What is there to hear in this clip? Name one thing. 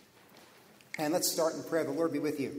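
A man begins to speak clearly through a microphone in a reverberant hall.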